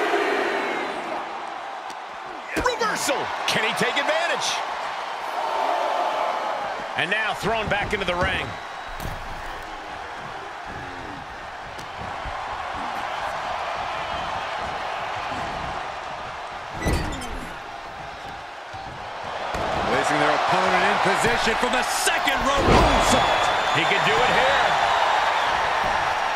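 A large crowd cheers loudly in an echoing arena.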